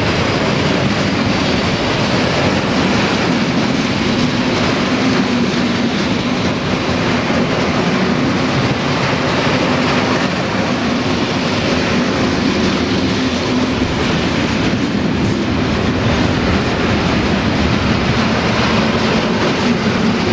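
Steel wheels clatter rhythmically over rail joints.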